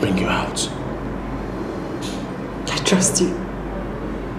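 A man speaks in a low, tense voice close by.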